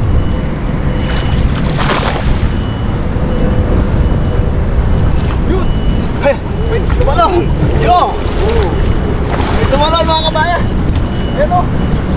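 Water splashes around a man's legs as he wades.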